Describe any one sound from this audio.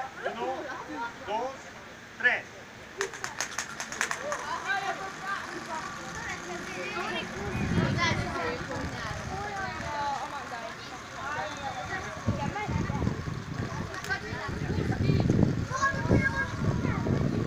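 Children and adults chatter and call out nearby, outdoors.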